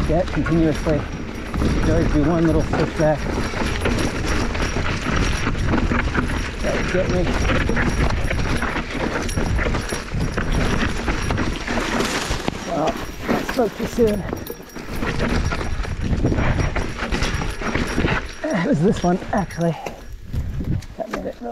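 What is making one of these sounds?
Bike tyres crunch and rattle over a rough dirt trail.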